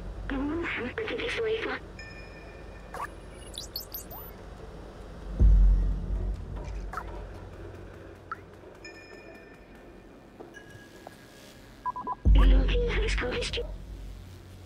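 A small robot chatters in quick electronic bleeps.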